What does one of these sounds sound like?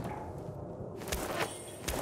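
Papers rustle as they are picked up.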